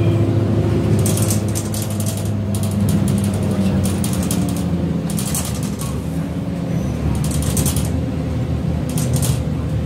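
The bus body rattles as the bus drives along.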